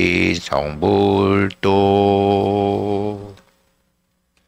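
A man chants in a long, low, steady voice.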